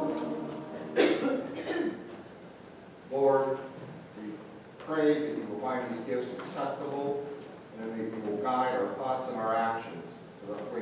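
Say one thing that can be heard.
A man prays calmly through a microphone in a reverberant hall.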